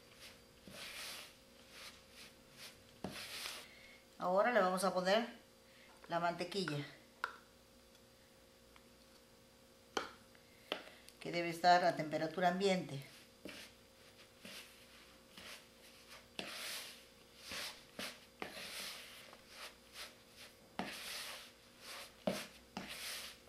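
Hands squish and knead soft dough in a bowl.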